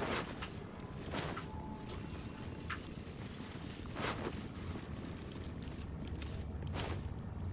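Magic spells whoosh and crackle in short bursts.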